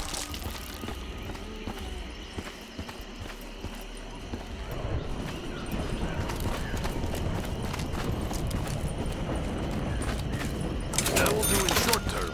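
Footsteps tread steadily over soft ground.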